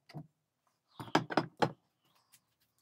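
A long steel bar knocks against metal and wood.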